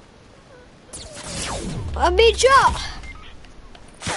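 Gunshots fire in a video game.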